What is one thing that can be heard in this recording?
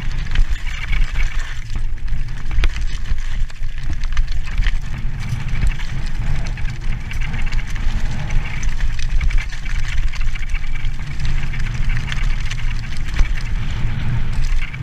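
Bicycle tyres crunch and rattle over loose rocks.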